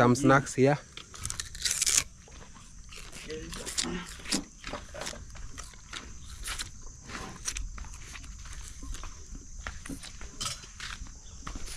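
A man bites and crunches on sugarcane close by.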